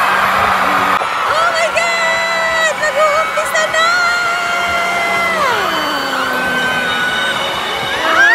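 A woman sings along close by with held notes.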